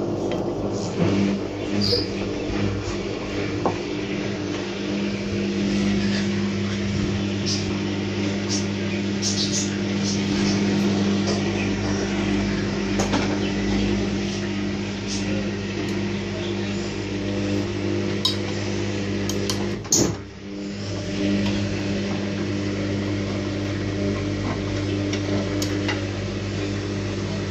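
Wet laundry tumbles and sloshes in water inside a washing machine drum.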